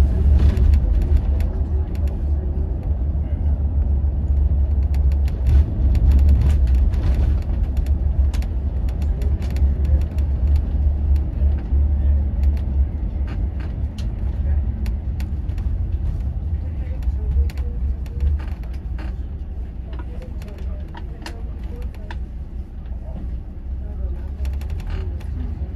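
A bus engine rumbles low and steady from inside, quieting as the bus slows.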